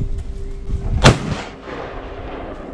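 A rifle fires a single loud shot that echoes across open ground.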